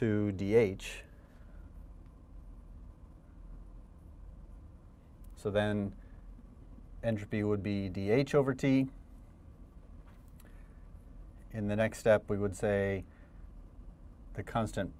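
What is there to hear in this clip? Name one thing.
A middle-aged man lectures calmly into a close microphone, pausing between phrases.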